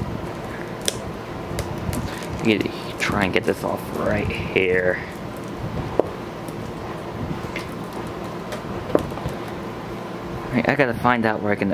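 Plastic packaging crinkles and rustles in a hand.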